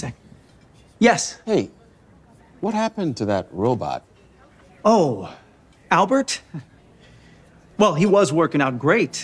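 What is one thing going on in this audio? A man exclaims loudly and animatedly, then explains.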